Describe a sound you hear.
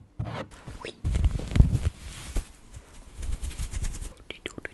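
Wool gloves rub and brush against a microphone with a soft muffled rustle.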